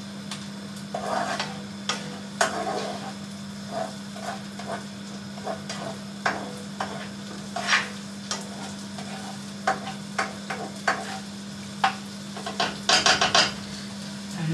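A spatula scrapes and clinks in a frying pan.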